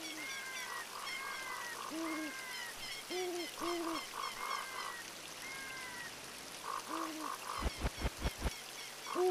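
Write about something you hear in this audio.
Small flying creatures screech in short repeated cries.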